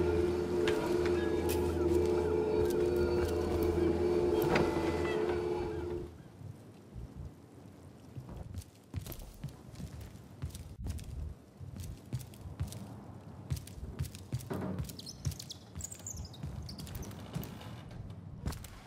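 Footsteps tread on stone and wooden floors.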